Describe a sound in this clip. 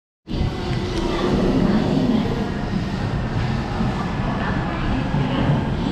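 A train idles with a low, steady hum.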